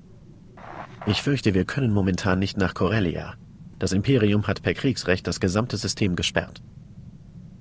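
A man speaks calmly and clearly through a microphone.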